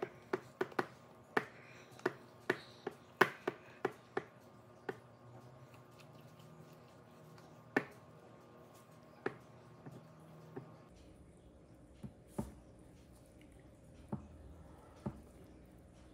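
A spatula clicks and scrapes against a glass bowl.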